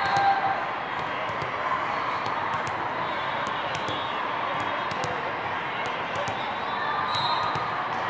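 A ball bounces on a hard floor.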